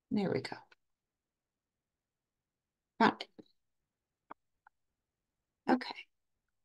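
A woman speaks calmly in short bursts over an online call.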